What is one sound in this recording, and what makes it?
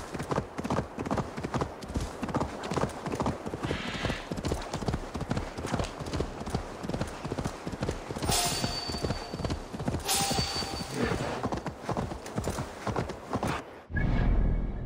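Hooves gallop steadily on ground.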